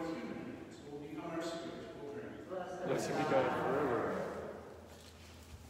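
A middle-aged man chants in a large echoing hall.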